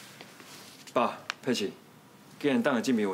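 A young man speaks, close by.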